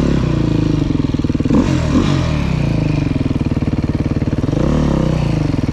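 An enduro dirt bike engine revs up and down while riding.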